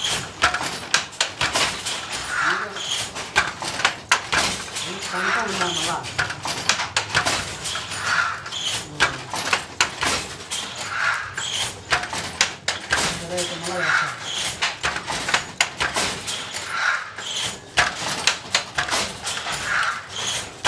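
A wooden handloom clatters and knocks in a steady rhythm.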